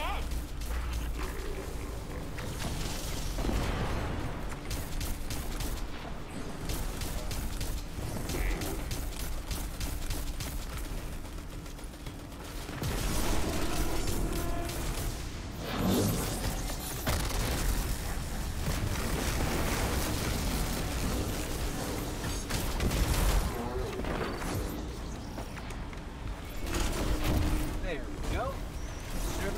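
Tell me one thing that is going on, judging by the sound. Rapid gunfire cracks and rattles.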